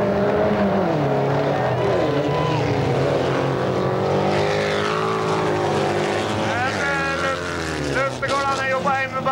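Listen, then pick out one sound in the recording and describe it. Several car engines roar and rev loudly as the cars race around the track.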